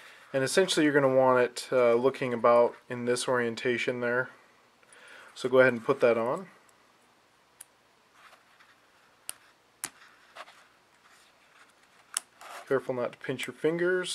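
Small metal parts click softly against each other.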